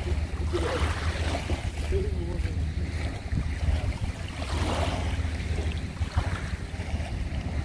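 Small waves wash gently onto a shore, outdoors in wind.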